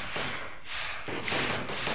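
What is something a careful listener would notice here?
A sword strikes a monster with short, sharp hits.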